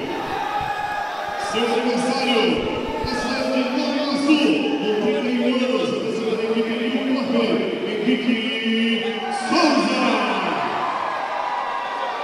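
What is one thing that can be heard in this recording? A large crowd murmurs and cheers in a big echoing hall.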